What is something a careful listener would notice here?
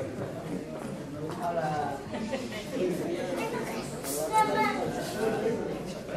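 A man speaks into a microphone over a loudspeaker in an echoing hall.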